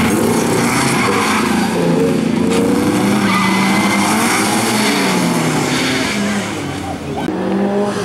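Tyres skid and scrape on loose gravel.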